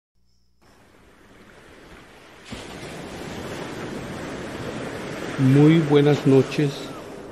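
Ocean waves surge and crash against rocks.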